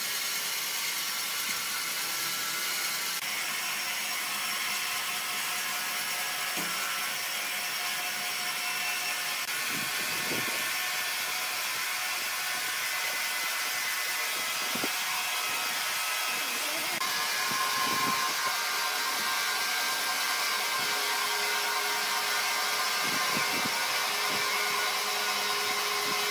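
A band saw whines steadily as it cuts through a large log.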